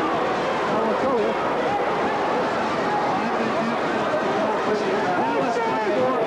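A large crowd chatters steadily in a big echoing arena.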